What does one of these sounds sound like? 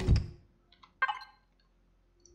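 A menu opens with a short chime.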